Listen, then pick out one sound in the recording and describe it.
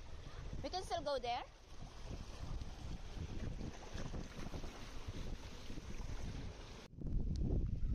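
Sea water sloshes against rocks.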